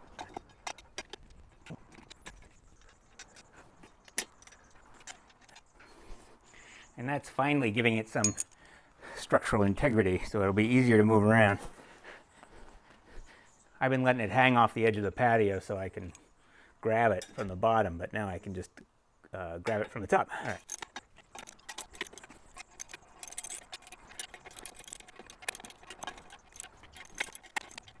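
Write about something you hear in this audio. A metal wrench clicks and clinks against bolts.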